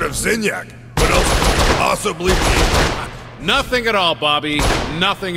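A gun fires in bursts.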